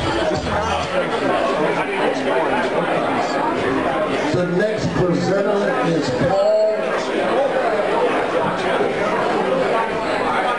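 A crowd chatters in the background.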